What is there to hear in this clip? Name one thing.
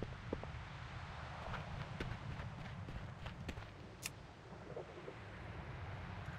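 A character's footsteps tread softly over the ground.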